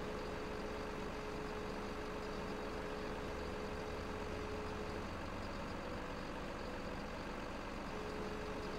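A heavy machine engine hums steadily.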